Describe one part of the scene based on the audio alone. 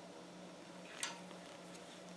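Bolt cutters snip through a metal link with a sharp click.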